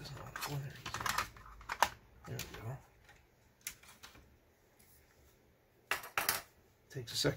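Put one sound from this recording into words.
A plastic cartridge clicks into place in a connector.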